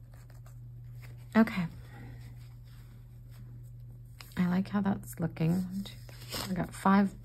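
A hand rubs paint across paper with a soft brushing sound.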